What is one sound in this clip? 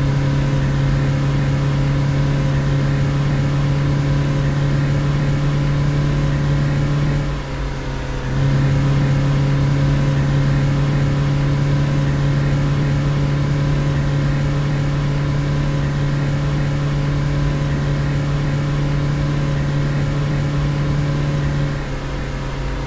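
A diesel engine hums steadily inside a vehicle, dipping briefly once.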